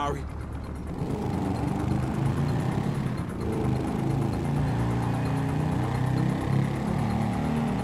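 A motorcycle engine idles and revs.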